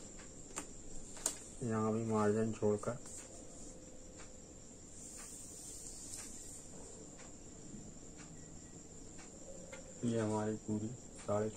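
A tape measure rustles softly against cloth.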